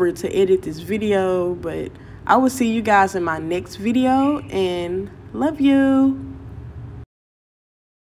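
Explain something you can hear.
A young woman speaks with expression close by.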